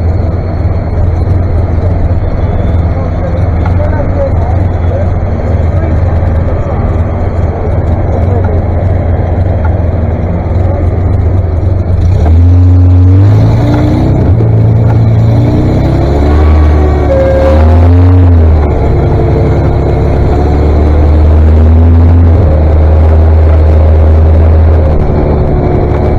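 Tractor engines rumble steadily nearby, outdoors.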